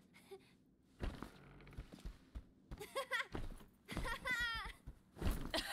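A child laughs and shouts with excitement.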